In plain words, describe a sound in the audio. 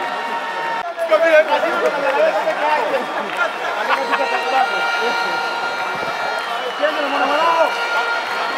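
A large crowd cheers and chants across an open stadium.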